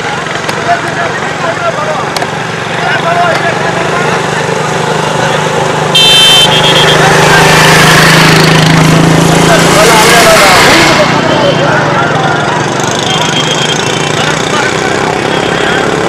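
Motorcycles ride past close by.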